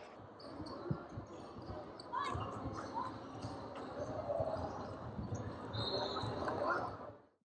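Young men talk and call out in an echoing gym.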